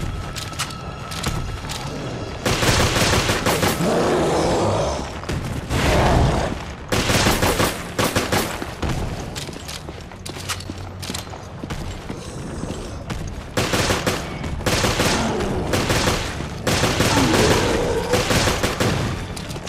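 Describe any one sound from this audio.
A monster growls and shrieks.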